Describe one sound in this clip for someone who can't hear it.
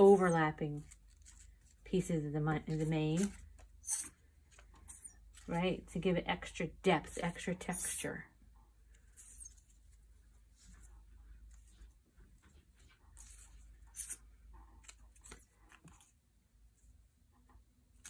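Paper crinkles softly as strips are pressed down by hand.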